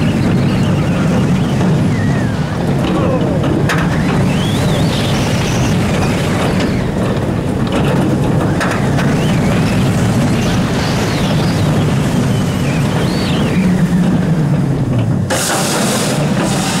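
A roller coaster car rumbles and roars along its steel track.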